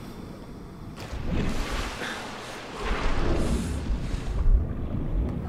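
Water splashes and rushes as something plunges under the surface.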